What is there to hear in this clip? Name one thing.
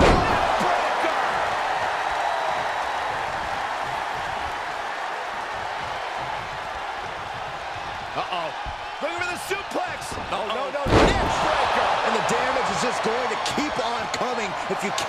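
A large crowd cheers and roars throughout in a big echoing arena.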